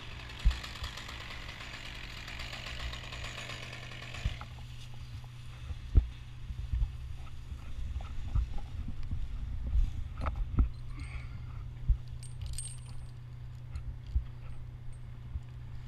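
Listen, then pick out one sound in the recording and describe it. Branches rustle and creak as a climber moves through a tree.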